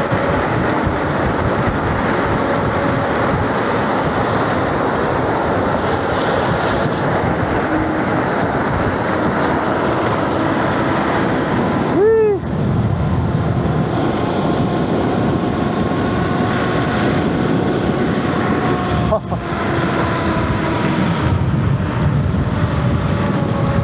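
Wind roars loudly against a microphone while riding.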